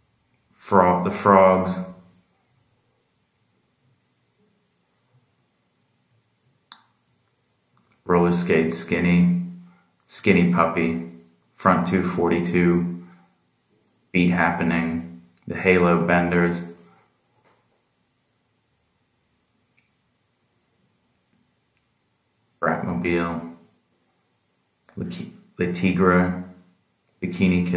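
A man speaks calmly close by, in short phrases with pauses.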